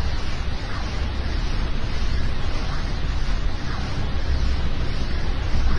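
Crackling energy roars and rumbles steadily.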